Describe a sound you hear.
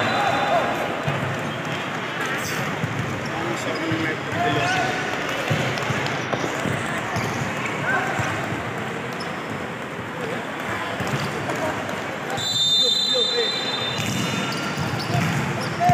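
A crowd of young men and women chatters nearby.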